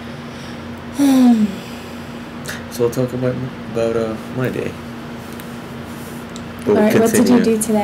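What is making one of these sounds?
A young woman talks casually, close up through a webcam microphone.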